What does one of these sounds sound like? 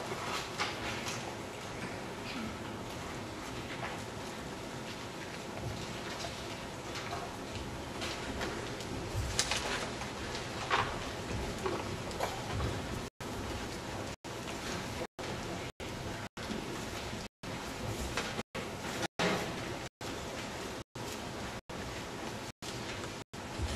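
Footsteps shuffle as a group of people walks across the floor.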